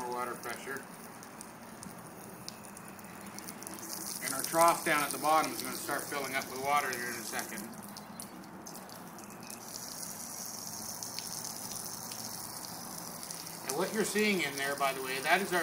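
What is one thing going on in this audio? A thin stream of water splashes onto a hard flat surface.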